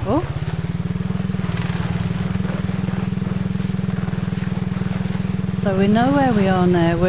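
A quad bike engine drones steadily at low revs.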